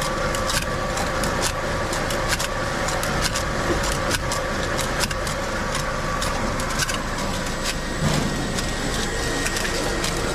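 Machine parts click and clack rapidly.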